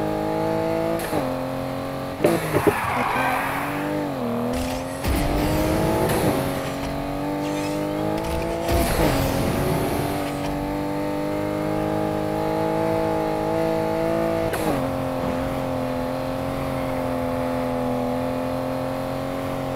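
A sports car engine roars at high revs, dropping in pitch at each gear shift.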